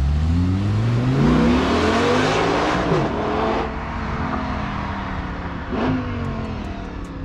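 A sports car accelerates away with a roaring engine.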